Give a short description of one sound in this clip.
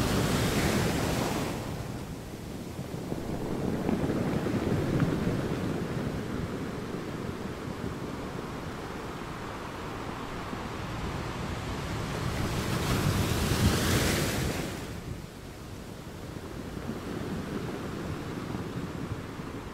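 Surf washes and fizzes over a rocky shore.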